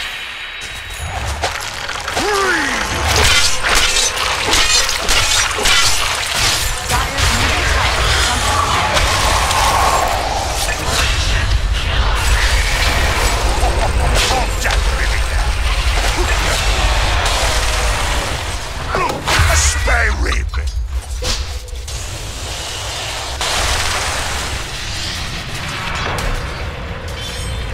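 Magic blasts and hits crash again and again in a fight.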